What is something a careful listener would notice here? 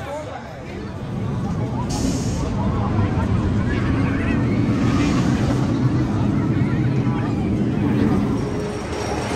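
A roller coaster train rumbles loudly along its track.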